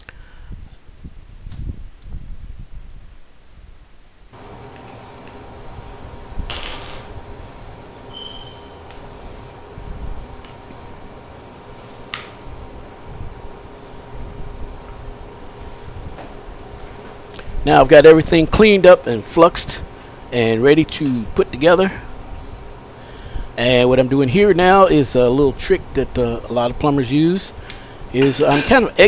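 Metal pipe fittings clink and knock as they are handled.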